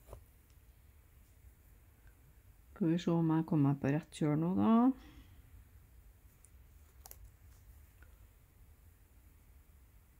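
A needle and thread pull softly through fabric.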